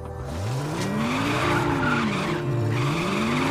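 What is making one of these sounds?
Tyres screech on asphalt during a skid.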